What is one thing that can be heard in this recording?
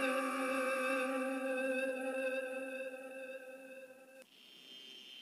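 A motor hums steadily.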